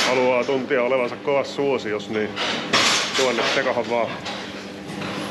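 A man talks calmly and cheerfully close to the microphone.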